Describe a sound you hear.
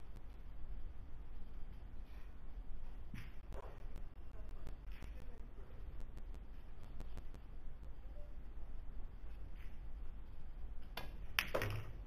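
A cue tip strikes a ball with a short tap.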